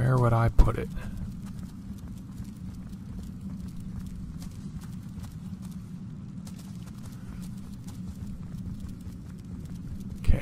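Footsteps fall softly on a stone floor.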